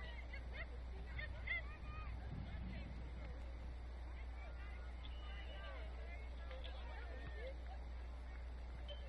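Young players shout to each other far off across an open field.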